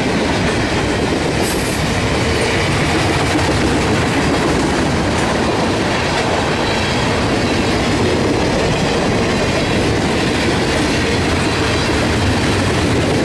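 A long freight train rumbles past close by, wheels clattering loudly on the rails.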